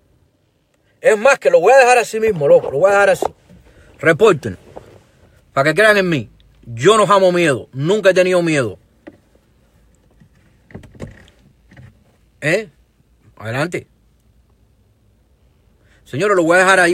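A middle-aged man speaks calmly and close to the microphone, with pauses.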